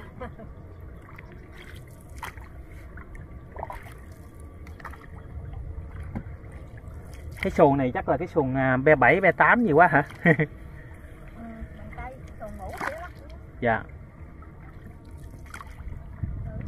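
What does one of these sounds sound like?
A wooden paddle dips and splashes softly in calm water.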